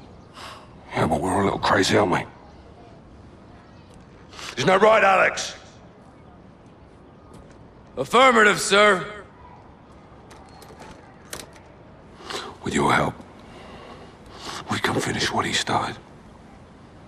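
A middle-aged man speaks in a low, calm voice close by.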